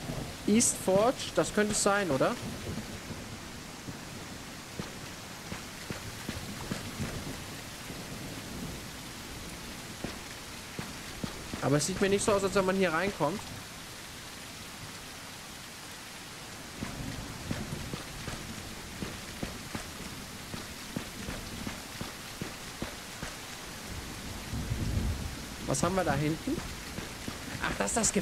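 A man talks into a close microphone in short bursts.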